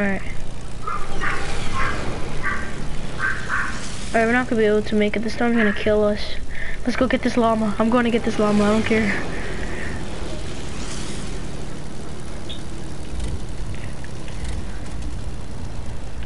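A small propeller plane engine drones steadily.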